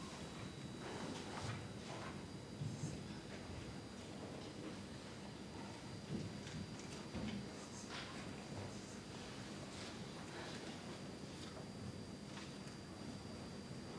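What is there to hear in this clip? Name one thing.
A man speaks calmly in a large hall, heard from a distance.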